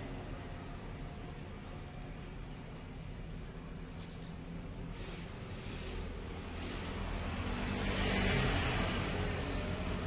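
Metal engine parts clink lightly against each other.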